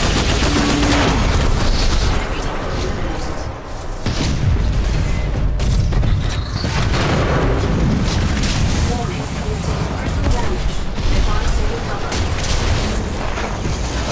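Large machines stomp and clank with deep rumbling.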